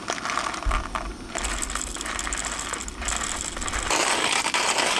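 Coffee beans rattle as they pour from a paper bag into a grinder.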